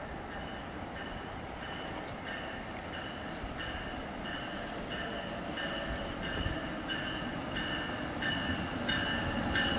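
An electric passenger train approaches along the tracks.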